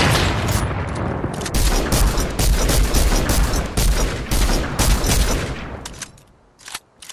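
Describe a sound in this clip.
Gunshots fire rapidly in a video game.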